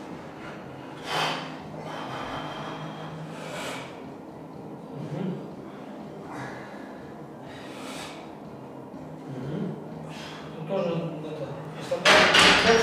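A man strains and breathes hard while pressing a heavy barbell.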